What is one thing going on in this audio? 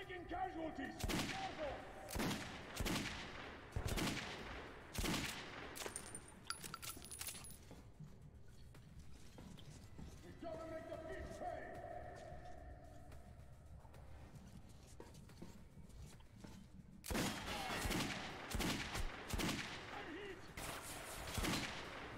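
A rifle fires several loud, sharp shots that echo.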